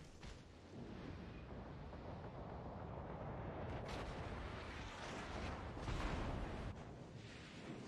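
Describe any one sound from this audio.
Heavy naval guns fire in deep booming blasts.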